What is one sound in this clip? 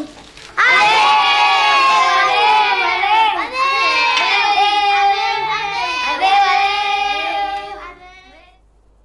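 Children sing together loudly and cheerfully.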